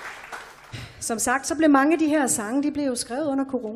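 A woman sings into a microphone, heard through loudspeakers.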